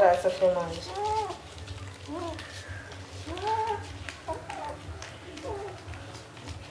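Puppies whimper and squeal in short, rising cries.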